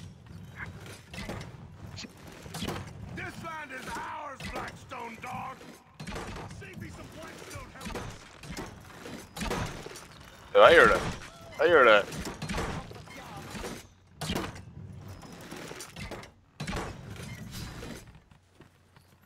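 A heavy crossbow fires bolts with sharp thuds again and again.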